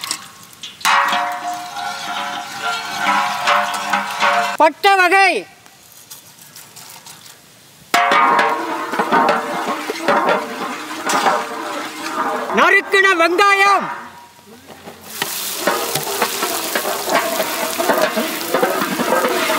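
Hot oil sizzles and bubbles loudly.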